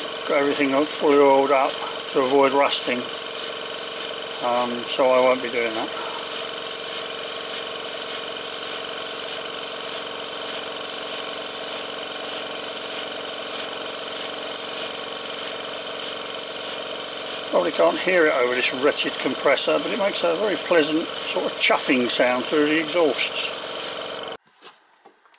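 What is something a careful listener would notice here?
A small model steam engine runs with a steady, fast hissing chuff.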